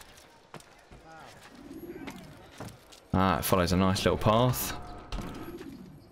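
Footsteps patter quickly across wooden rooftops.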